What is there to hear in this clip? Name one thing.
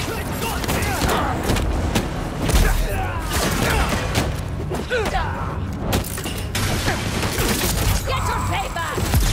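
Punches and kicks thud as fighters brawl.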